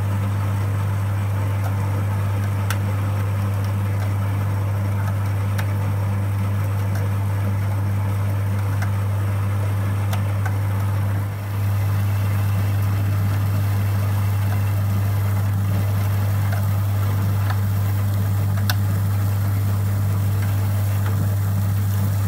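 A grain mill hums steadily.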